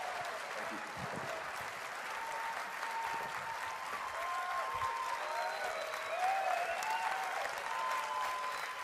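A large crowd cheers and screams loudly in a big echoing hall.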